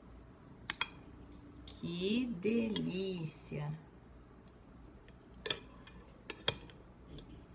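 A knife clinks against a glass plate.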